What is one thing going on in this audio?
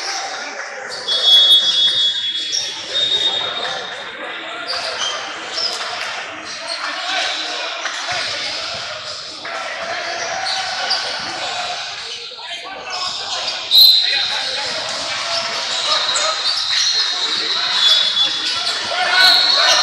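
Young players call out and shout across an echoing gym.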